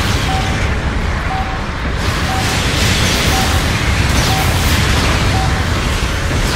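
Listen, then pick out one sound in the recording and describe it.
Heavy gunfire and blasts rumble and crackle steadily.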